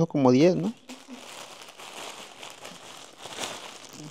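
Plastic wrapping crinkles in a hand.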